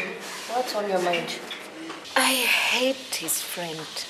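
A young woman answers sharply.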